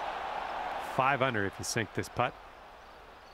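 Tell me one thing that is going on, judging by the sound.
A crowd cheers and groans loudly.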